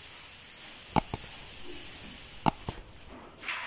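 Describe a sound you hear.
Sharp knocks sound against a wall box.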